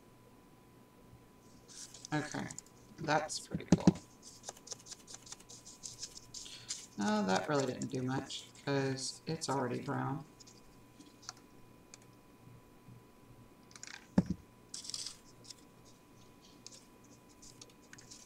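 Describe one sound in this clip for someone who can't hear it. Stiff paper rustles softly as it is folded and handled.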